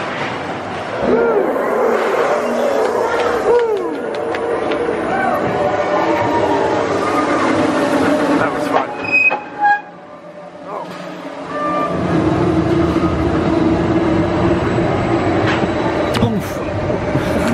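Wheels squeal on the rails.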